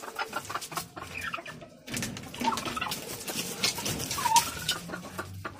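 A turkey gobbles and calls loudly nearby.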